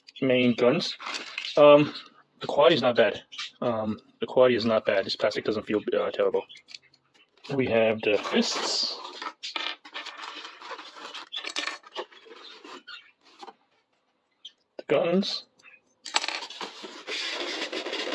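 Small plastic toy parts click and rattle as they are handled.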